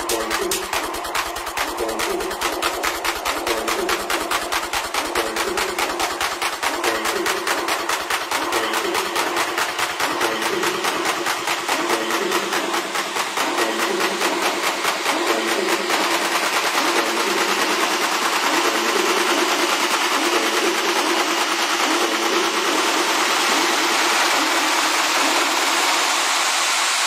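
Electronic dance music plays loudly with a fast, steady beat.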